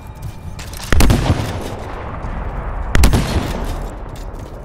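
Heavy blasts boom loudly, twice.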